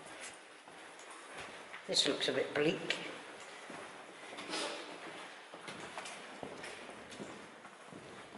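Footsteps walk along a hard floor.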